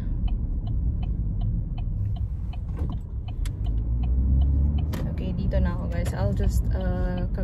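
A car engine and tyres rumble low and steady.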